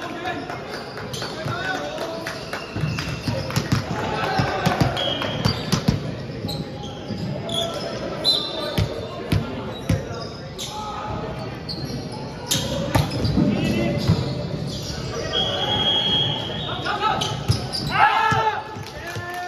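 Shoes squeak on the hard floor.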